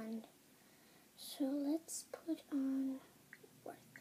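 A young girl speaks briefly close by.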